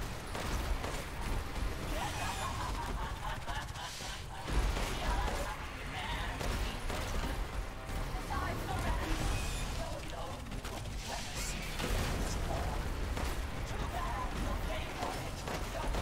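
Gunshots crack repeatedly.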